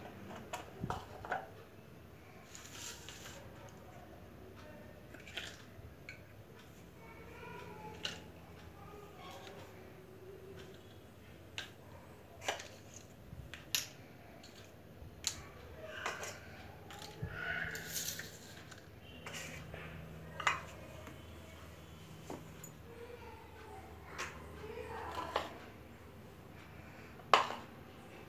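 Plastic toy dishes clack and tap as they are set down on a hard floor.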